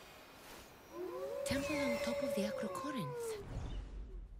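An eagle screeches loudly.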